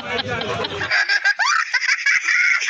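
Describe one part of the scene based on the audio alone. A young boy laughs loudly and with delight.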